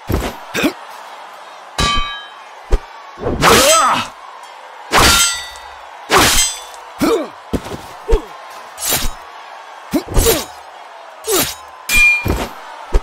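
Metal weapons clash and thud in a fight.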